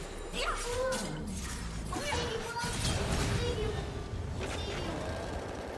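Game spell effects whoosh and crackle in a battle.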